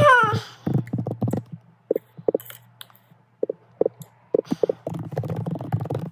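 A finger taps on a phone close to the microphone.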